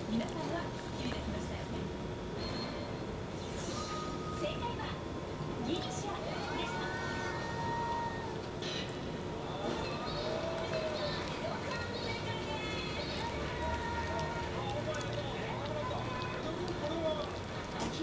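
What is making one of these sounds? A small dog breathes softly in its sleep.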